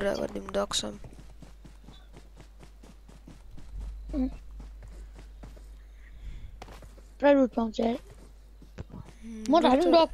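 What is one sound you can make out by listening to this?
Quick footsteps patter over grass.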